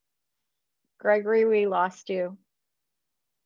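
A woman speaks briefly and calmly over an online call.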